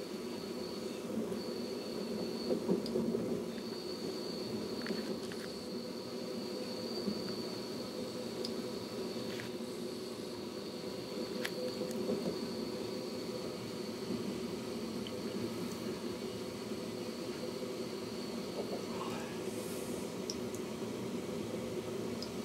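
A train rumbles steadily along the track, heard from inside a carriage.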